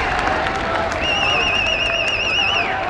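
A referee's whistle blows a warbling trill.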